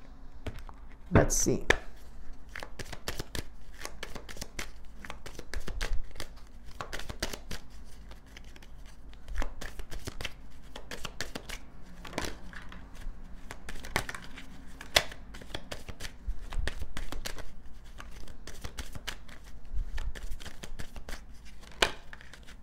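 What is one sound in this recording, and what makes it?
Cards are shuffled and tapped with soft crisp clicks close up.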